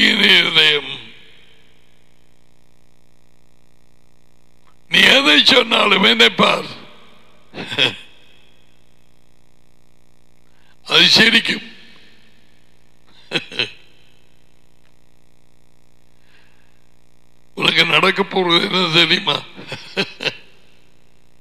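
An older man speaks with animation into a close headset microphone, in short bursts.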